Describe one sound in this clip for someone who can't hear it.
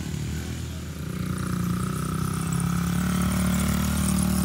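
A small dirt bike engine buzzes steadily at close range.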